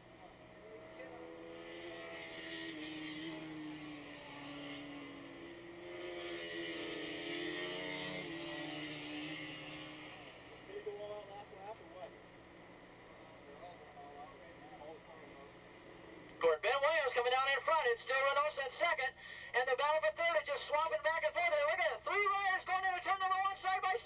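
Motorcycle engines whine and rev as the bikes race by in the distance.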